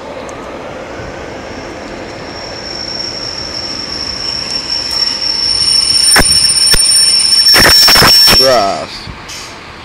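Train brakes squeal with a steady high whine.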